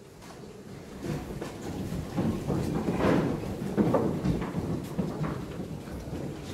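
A man chants slowly in a large echoing hall.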